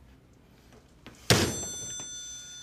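A phone handset is put down with a sharp clack.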